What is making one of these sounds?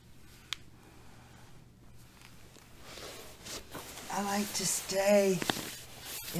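Clothing rustles on a mat as a woman shifts position.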